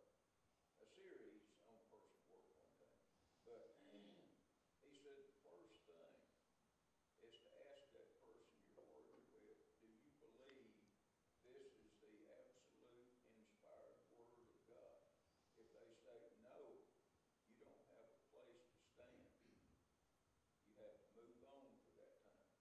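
A man speaks calmly into a microphone in a large room with a slight echo.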